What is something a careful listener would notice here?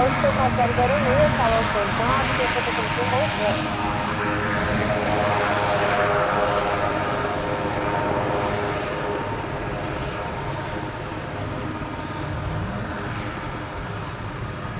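A helicopter's engine whines and its rotor thumps steadily nearby, slowly fading.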